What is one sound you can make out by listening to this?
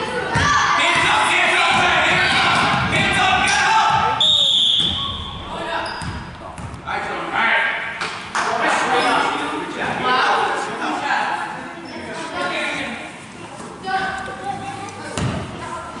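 A crowd of adults and children cheers and shouts close by in a large echoing gym.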